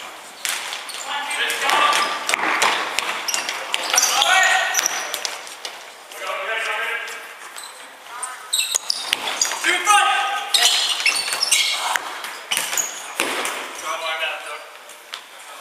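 Young men shout to each other across the echoing hall.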